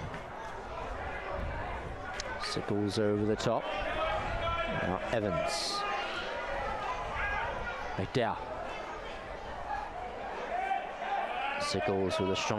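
A crowd of spectators murmurs nearby.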